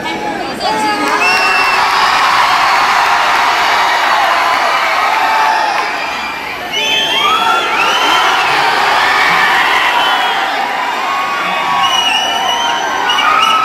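People in a crowd whistle sharply.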